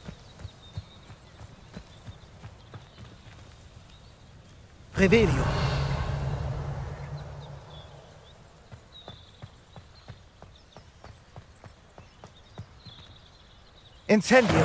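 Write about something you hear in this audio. Footsteps run steadily over grass and stone.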